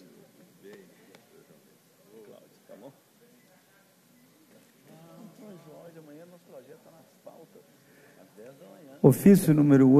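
Several men chat quietly in a large room.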